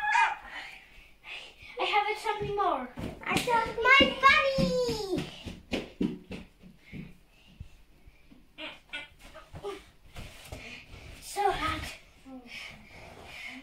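Young girls shout and squeal playfully nearby.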